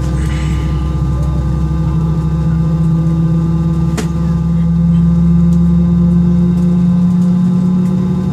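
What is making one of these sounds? Jet engines hum steadily inside an aircraft cabin.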